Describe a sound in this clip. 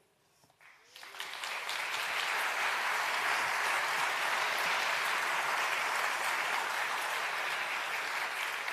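A large audience applauds in a big hall.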